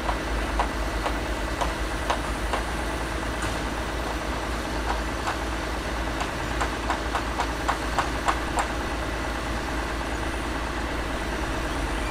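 An excavator engine rumbles steadily in the distance.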